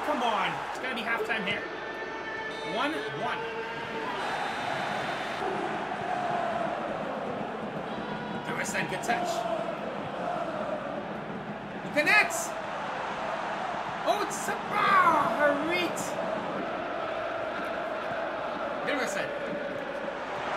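A stadium crowd murmurs and chants steadily.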